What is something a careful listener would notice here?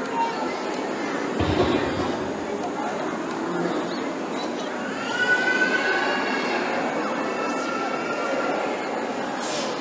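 A young girl sings close by.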